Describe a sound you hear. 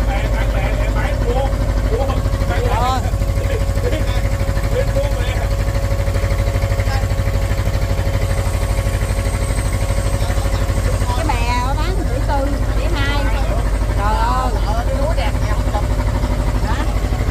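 A boat engine drones steadily and loudly.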